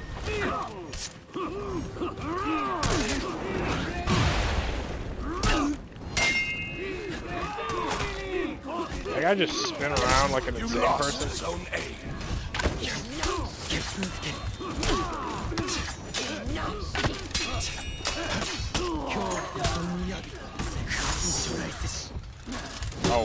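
Swords clang and clash repeatedly in a fight.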